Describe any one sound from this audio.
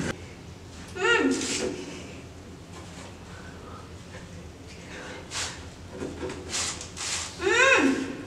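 A young woman lets out muffled, whimpering cries through a gag.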